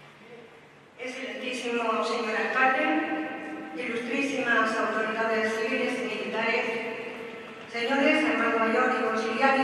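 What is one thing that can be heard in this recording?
A crowd of voices sings together in a large echoing hall.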